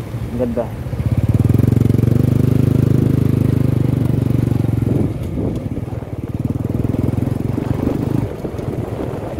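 A motor engine rumbles steadily close by.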